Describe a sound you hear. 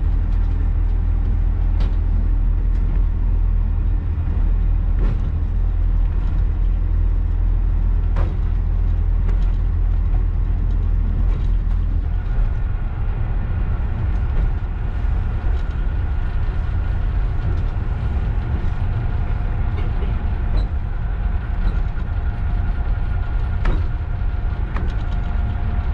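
A train engine rumbles steadily and loudly.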